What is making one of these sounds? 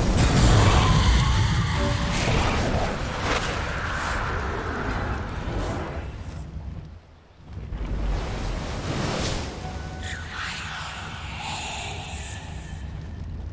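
Magical spell effects crackle and whoosh.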